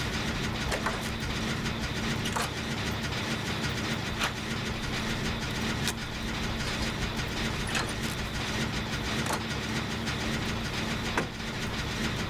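Metal parts click and clank now and then.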